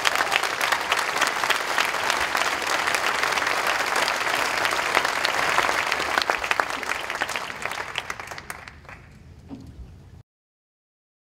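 An audience applauds loudly in a large room, and the clapping slowly fades away.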